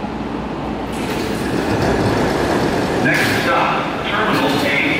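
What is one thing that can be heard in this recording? Sliding doors rumble open.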